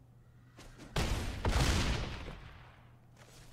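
A game spell bursts with a loud whoosh.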